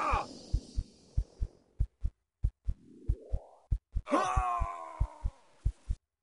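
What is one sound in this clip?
Heavy footsteps thud in a steady rhythm.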